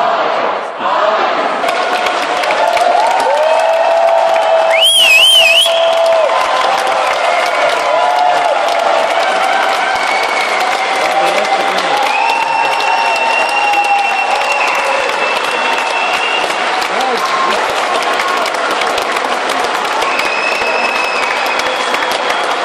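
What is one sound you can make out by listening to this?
A large crowd chatters and cheers in a big echoing hall.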